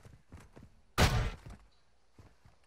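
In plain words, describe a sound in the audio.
A heavy door bangs open.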